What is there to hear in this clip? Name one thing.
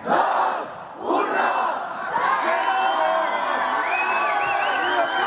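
Many young women shriek loudly in high voices.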